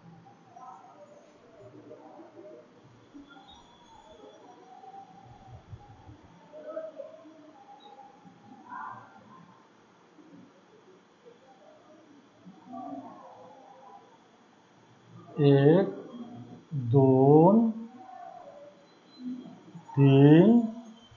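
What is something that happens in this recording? A man speaks calmly nearby, now and then raising his voice.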